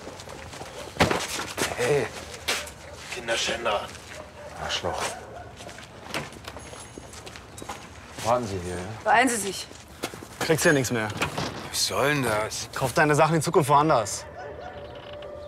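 A second man answers angrily, close by.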